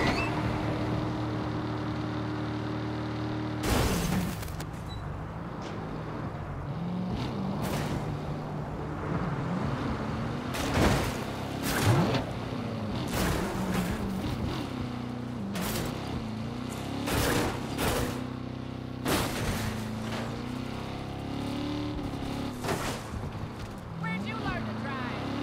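A car engine revs and roars steadily.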